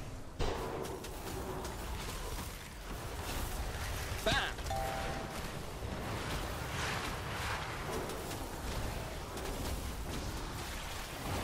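Spell effects crackle and whoosh in a game battle.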